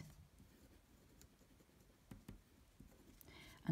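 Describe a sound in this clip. A felt-tip marker squeaks and scratches softly across paper.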